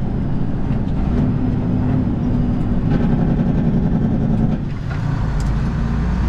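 A heavy truck's diesel engine rumbles loudly from inside the cab.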